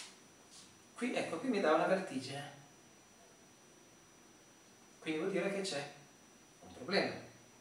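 A middle-aged man speaks in short bursts, close by.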